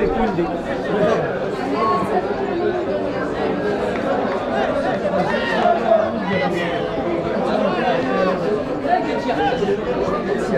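Football players shout and call out across an open field.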